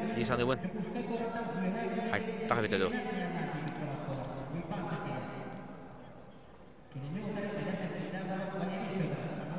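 A crowd of spectators murmurs in a large echoing hall.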